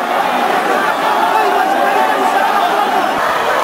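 A woman shouts and wails close by.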